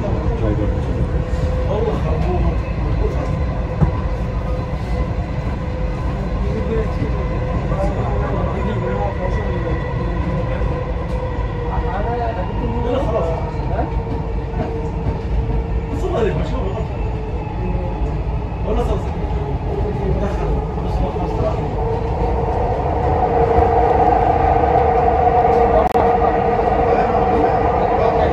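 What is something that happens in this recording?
A vehicle rumbles steadily as it rolls along.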